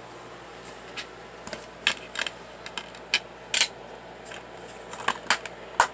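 Plastic disc cases click and clatter as they are handled up close.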